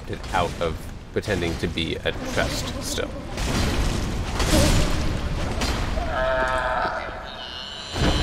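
A monster groans and roars loudly.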